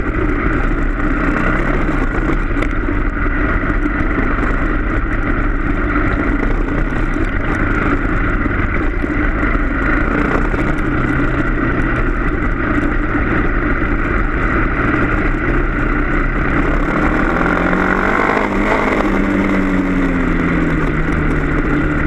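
A motorbike engine drones close by, revving up and then easing off.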